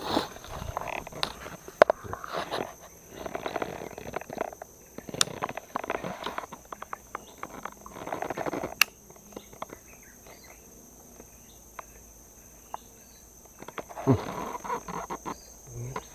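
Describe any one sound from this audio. A baitcasting reel clicks and whirs as line is wound in.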